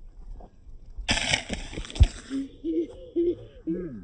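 A man lands with a thud on the grass.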